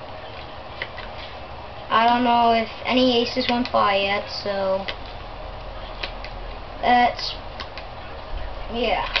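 Playing cards rustle and flick in a boy's hands.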